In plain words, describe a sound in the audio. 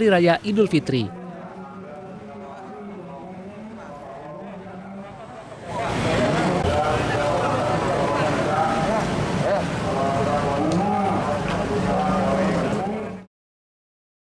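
A crowd of men and women talk and murmur outdoors.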